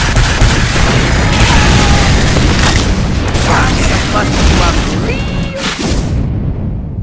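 A flamethrower roars steadily.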